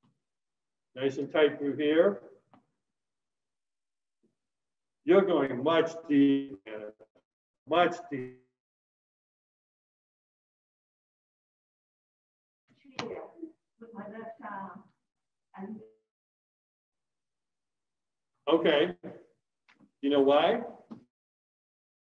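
A man speaks calmly in short phrases through an online call.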